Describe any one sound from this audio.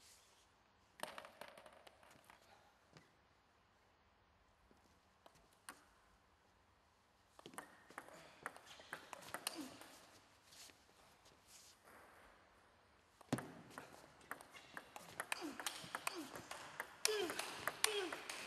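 A table tennis ball bounces on a table.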